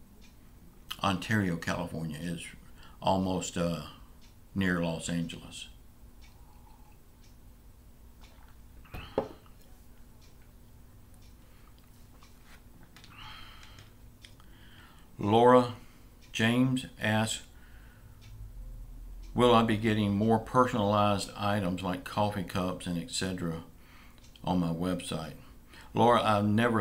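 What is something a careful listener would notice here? An older man speaks calmly and close to a microphone, in bursts with pauses.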